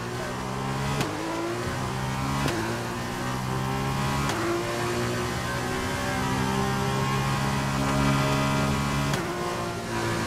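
Gear shifts crack sharply, one after another.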